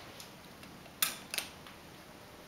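A button clicks as it is pressed.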